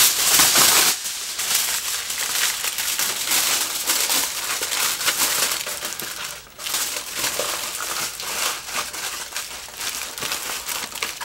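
Aluminium foil crinkles and crackles.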